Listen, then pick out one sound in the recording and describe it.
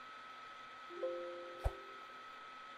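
A short computer error chime sounds.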